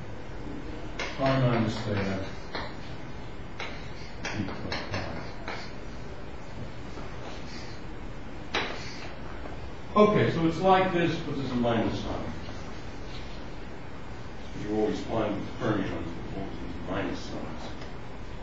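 An elderly man speaks in bursts, calmly.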